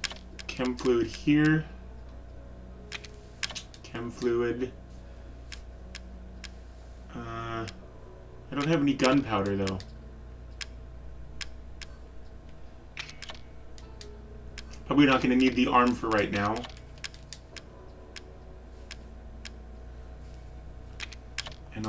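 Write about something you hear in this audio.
Short soft clicks tick as menu selections change.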